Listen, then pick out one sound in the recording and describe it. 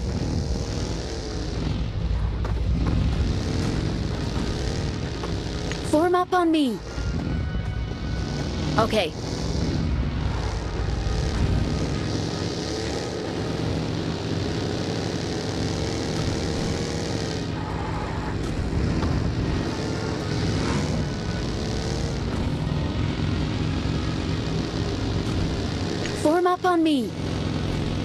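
A buggy engine roars steadily as it drives over rough ground.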